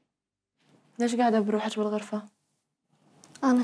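A woman speaks gently and closely.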